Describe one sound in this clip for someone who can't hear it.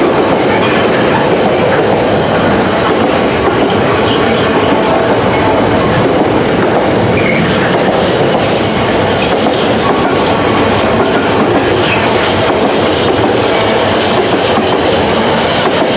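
A freight train rumbles past close by, wheels clattering on the rails.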